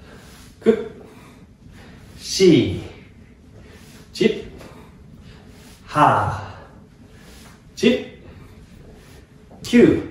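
A young man calls out short, rhythmic counts nearby.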